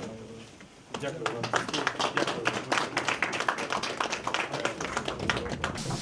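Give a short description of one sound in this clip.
A group of people clap their hands in applause.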